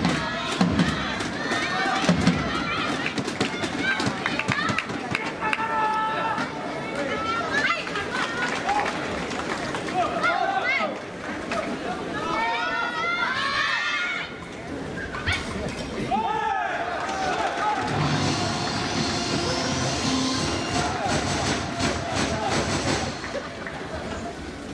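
A large crowd cheers and chants loudly in an echoing hall.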